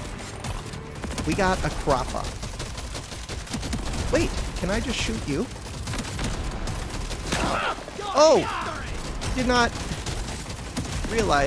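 Rapid gunfire crackles and pops.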